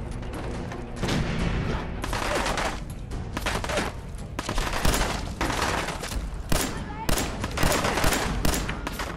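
Pistol shots ring out rapidly, echoing through a large hall.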